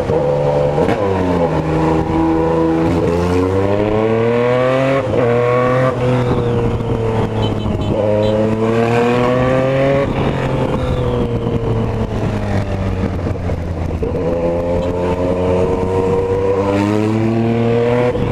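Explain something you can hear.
A motorcycle engine revs up and down as it shifts through gears.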